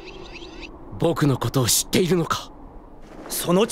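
A young man speaks sharply and close.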